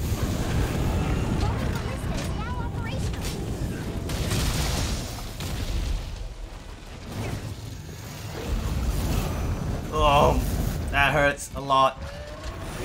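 Fire rumbles low and steadily.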